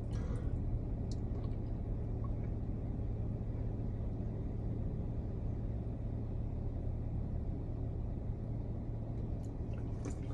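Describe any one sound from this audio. A young woman gulps a drink.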